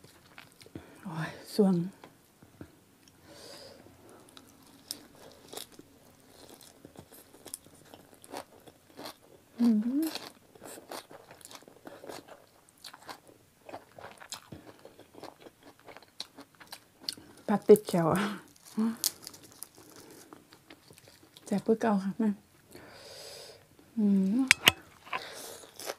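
A woman slurps noodles loudly up close.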